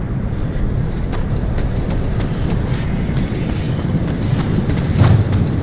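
Heavy armoured footsteps clank on a stone floor.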